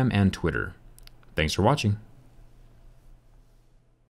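A small tray clicks out of a phone.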